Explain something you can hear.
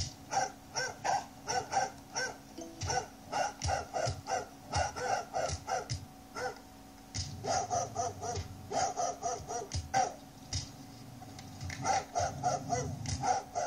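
Dogs bark and snarl fiercely in quick bursts.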